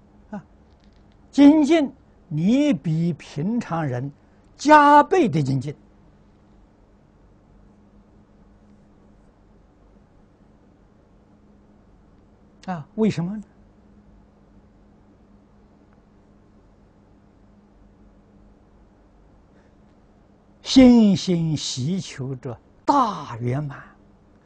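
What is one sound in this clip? An elderly man speaks calmly into a close microphone, pausing at length between phrases.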